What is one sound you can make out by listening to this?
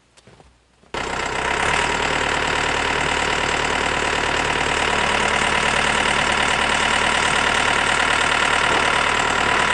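A tractor engine runs steadily close by.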